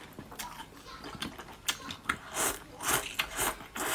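A young woman slurps noodles noisily close to a microphone.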